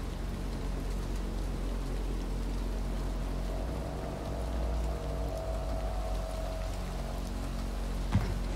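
Rain patters steadily outside.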